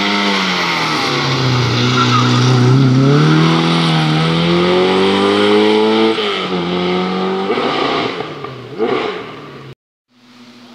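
A rally car engine roars loudly up close, revving and shifting gears as it speeds past and fades into the distance.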